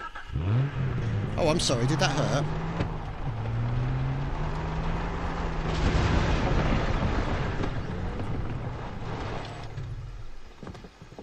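A car engine hums and revs as the car drives.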